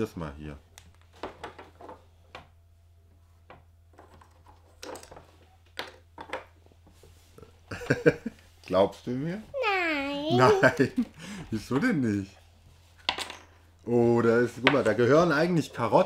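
Small game pieces click on a table.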